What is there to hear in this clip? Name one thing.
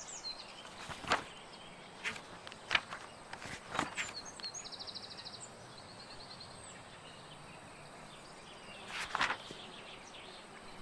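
Paper pages flip with a soft rustle.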